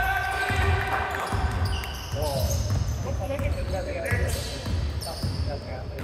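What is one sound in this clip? A basketball bounces with dull thumps as it is dribbled.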